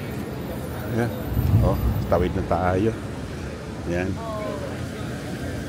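A man speaks nearby on the street.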